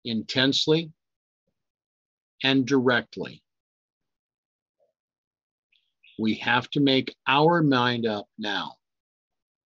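An older man speaks calmly and closely into a microphone, in short phrases with pauses.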